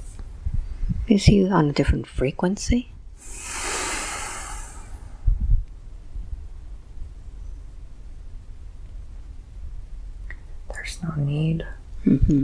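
A young man speaks softly and slowly close to a microphone.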